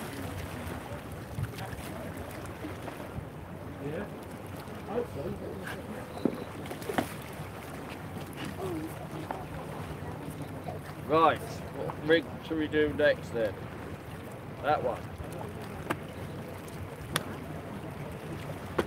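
Wind blows steadily outdoors by the water.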